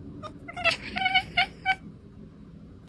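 A cat meows loudly several times, close by.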